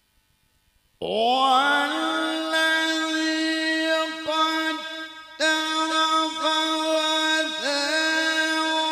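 An elderly man chants in long held notes through a microphone and loudspeakers.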